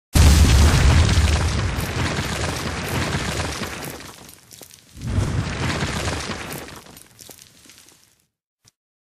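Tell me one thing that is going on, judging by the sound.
A stone wall bursts apart and rubble tumbles down with a loud rumbling crash.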